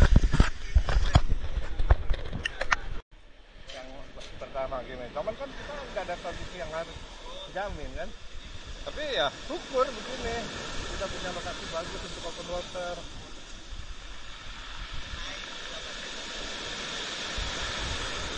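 Waves wash onto a pebble shore.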